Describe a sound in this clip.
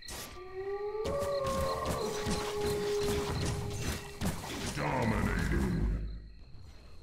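Magic spells whoosh and chime in a fight.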